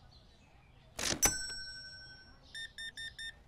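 A payment terminal chimes loudly and the tone slowly fades.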